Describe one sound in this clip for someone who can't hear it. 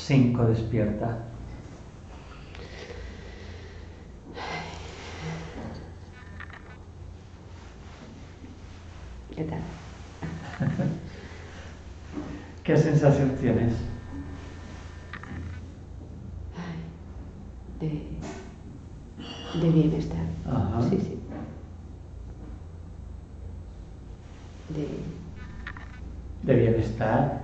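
A man speaks calmly and gently nearby.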